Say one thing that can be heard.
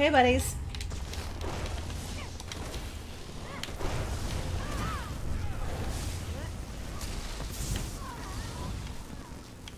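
Electric magic crackles and zaps in bursts.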